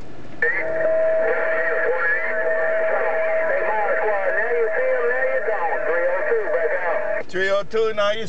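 A steady whistle sounds from a radio loudspeaker.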